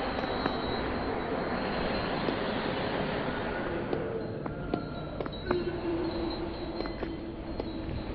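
Footsteps tread on hard stone.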